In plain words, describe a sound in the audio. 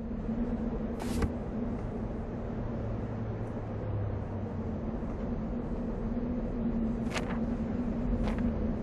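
Wooden toy blocks drop into place with soft whooshing thuds.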